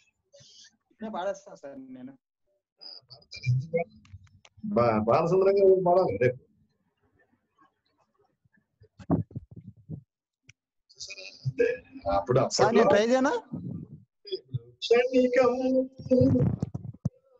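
A middle-aged man talks with animation through an online call, with pauses.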